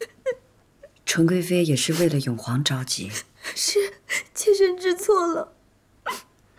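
A young woman sobs and speaks tearfully.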